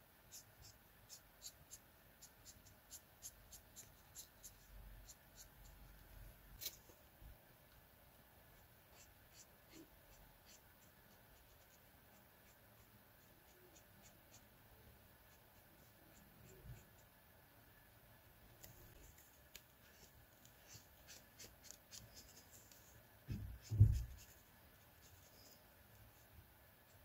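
A marker tip squeaks and scratches softly on paper.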